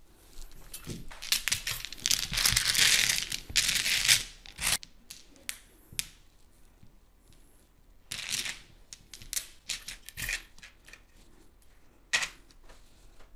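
Game tiles clatter and click as they are shuffled on a table.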